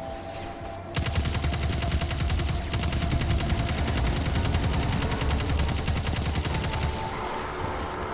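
A gun fires in a fast, steady stream of shots.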